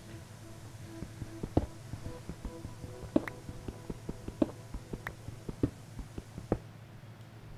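A pickaxe strikes stone with quick, repeated knocks.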